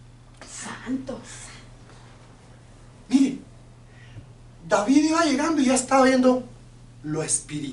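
An older man speaks with animation into a nearby microphone.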